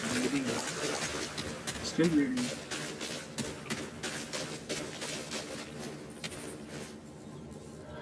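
Footsteps crunch through dry grass and gravel at a quick pace.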